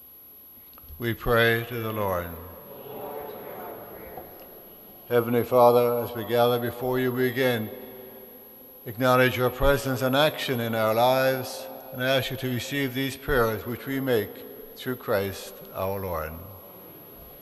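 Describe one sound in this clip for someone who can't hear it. An elderly man speaks with feeling through a microphone, his voice echoing in a large hall.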